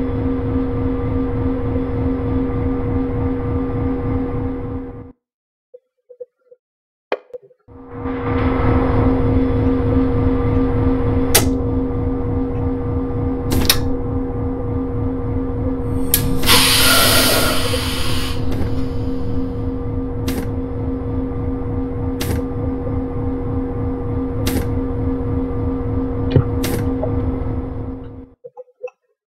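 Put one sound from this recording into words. A locomotive engine idles with a steady low hum.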